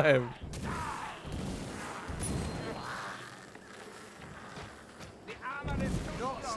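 A torch fire crackles and roars.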